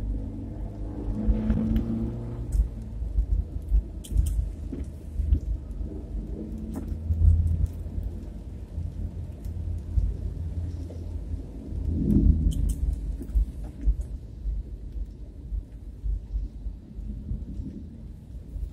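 A vehicle's engine rumbles low and steady from inside the cabin.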